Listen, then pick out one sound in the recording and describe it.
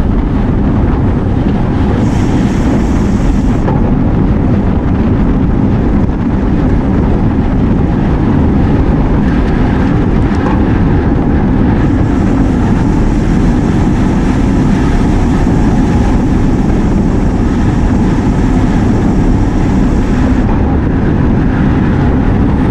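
Wind rushes loudly over a moving microphone outdoors.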